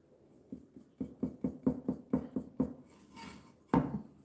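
A paintbrush scrapes in quick strokes across a plastic surface.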